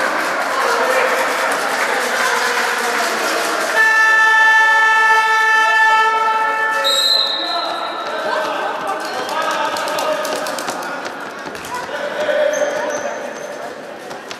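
Sneakers squeak on a wooden floor in an echoing hall.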